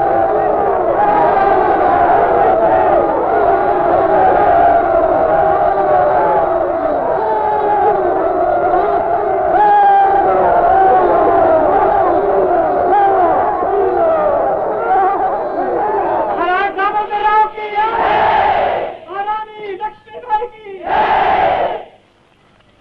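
A large crowd shouts and cheers loudly.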